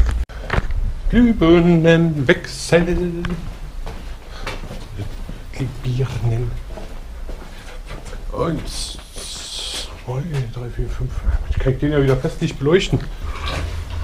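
A young man talks with animation, close to the microphone.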